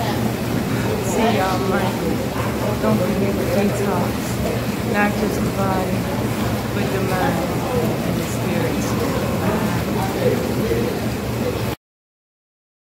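Water churns and bubbles in a pool.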